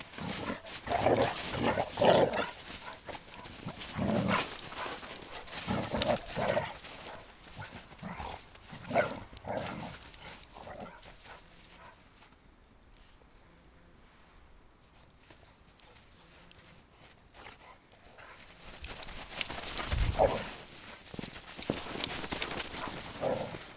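Paws crunch and scuffle in snow.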